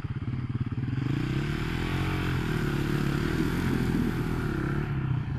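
Dirt bikes approach and rev louder in the distance.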